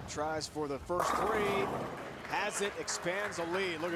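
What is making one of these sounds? Bowling pins crash and clatter loudly.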